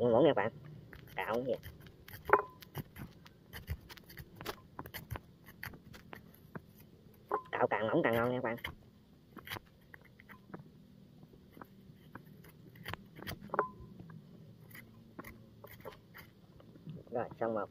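A small knife scrapes and cuts into a soft vegetable with quick light scratches.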